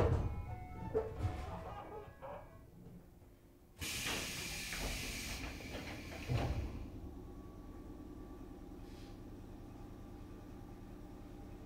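An electric train hums steadily.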